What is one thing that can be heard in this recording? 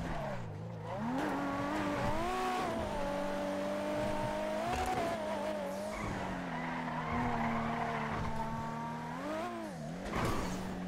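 A sports car engine revs and roars, rising and falling as gears shift.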